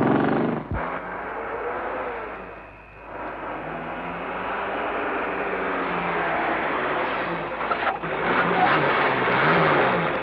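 A jeep engine rumbles as it approaches.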